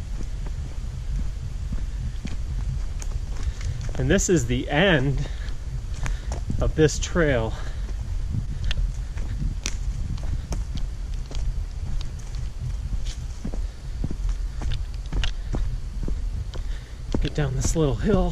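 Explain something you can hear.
Footsteps crunch on a forest floor.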